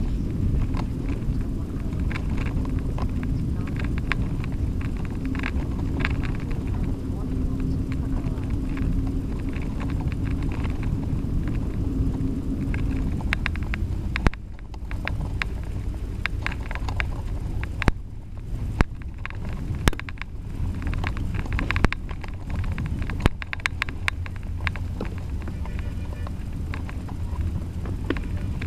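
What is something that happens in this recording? Wind rumbles loudly as the bicycle rides along.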